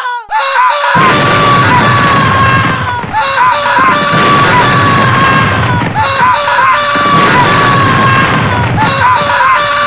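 Explosions boom and roar loudly, several times.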